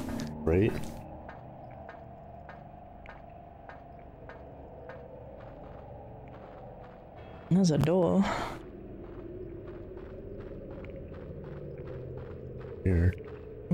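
Footsteps tap steadily on a hard surface.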